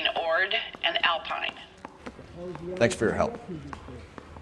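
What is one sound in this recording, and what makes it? A man speaks calmly into a telephone.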